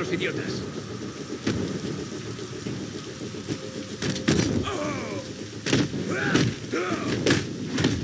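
Fists thud in a brawl, with sharp blows and impacts.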